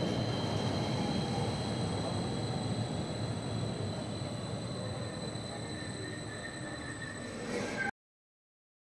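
A train rolls slowly through an echoing underground station with a low rumble.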